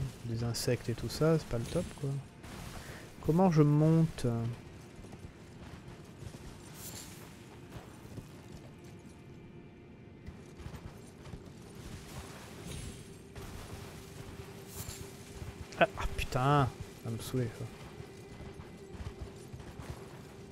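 A horse's hooves clop steadily on rocky ground.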